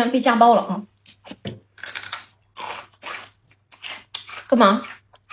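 Crunchy fried noodles crackle as a young woman bites and chews.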